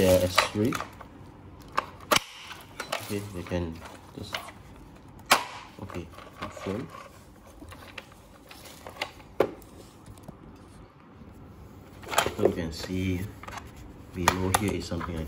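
Hard plastic parts click and knock together as they are fitted.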